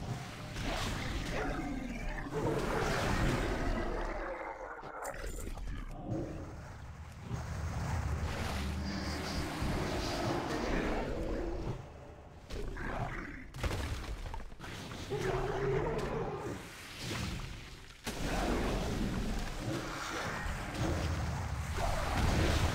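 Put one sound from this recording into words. Weapons strike with sharp impacts.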